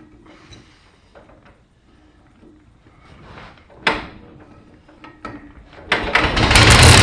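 A man yanks a pull-start cord on a small engine.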